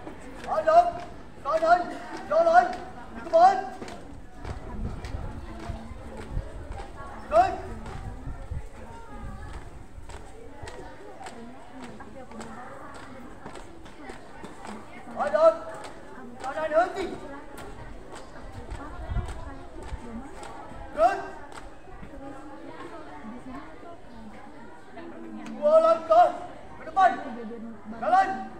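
A group of young women shout out drill calls in unison outdoors.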